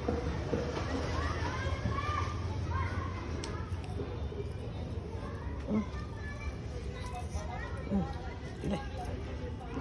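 A monkey chews and nibbles food close by.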